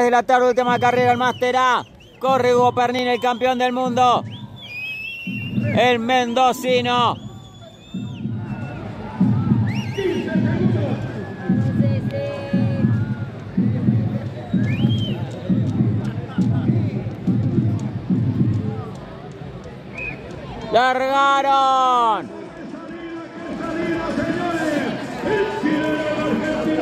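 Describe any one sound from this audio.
A crowd cheers outdoors.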